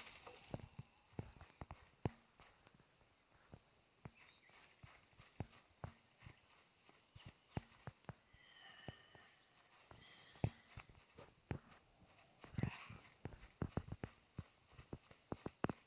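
Footsteps crunch over grass and dry ground.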